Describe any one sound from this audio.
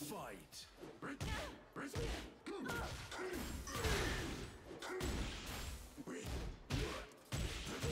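Punches and kicks thud and smack in a fighting game.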